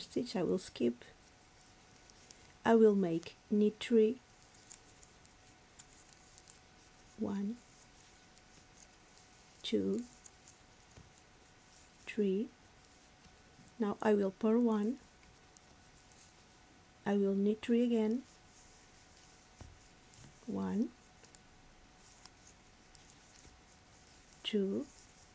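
Knitting needles click and tap softly.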